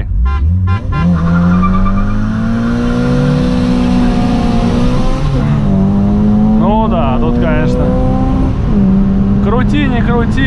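A car engine revs up as the car speeds up.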